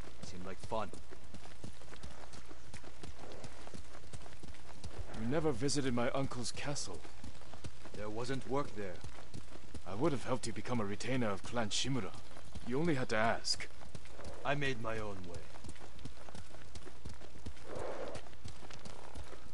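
Horses' hooves thud slowly on soft ground.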